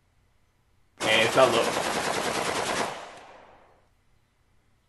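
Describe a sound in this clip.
A submachine gun fires a long rapid burst that rings off.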